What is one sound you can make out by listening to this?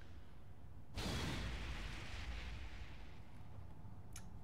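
A fiery whoosh bursts out and slowly fades.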